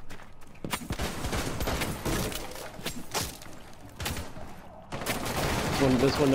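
A wooden barricade is smashed and splinters apart.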